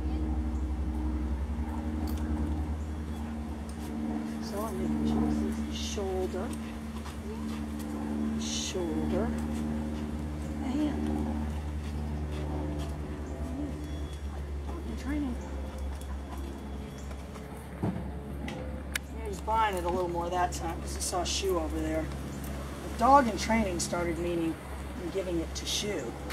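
A young woman talks to a dog in a calm, friendly voice nearby.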